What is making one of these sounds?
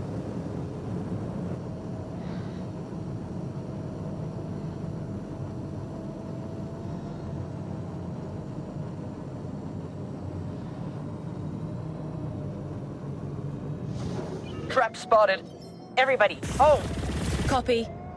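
A spaceship engine hums and roars steadily.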